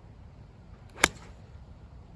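A golf driver strikes a ball off a tee with a sharp crack.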